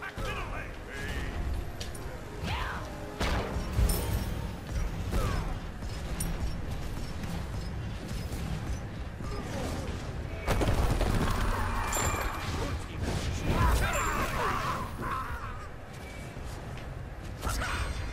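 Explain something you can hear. Weapons clash and magic blasts burst in a fast-paced fight.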